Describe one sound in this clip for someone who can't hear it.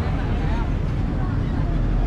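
A bus drives past.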